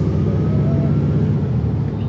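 A truck drives past close by.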